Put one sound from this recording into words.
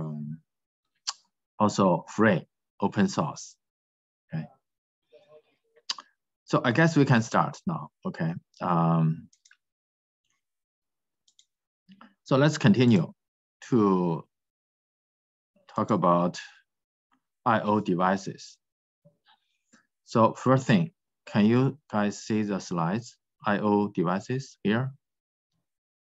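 A man speaks calmly through a microphone, as if on an online call, in short phrases with pauses.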